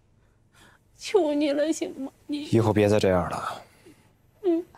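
A young man speaks firmly, close by.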